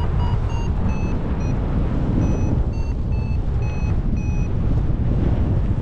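Strong wind rushes and buffets steadily.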